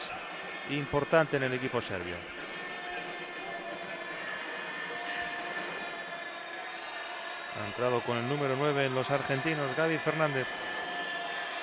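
A large crowd murmurs steadily in a big echoing arena.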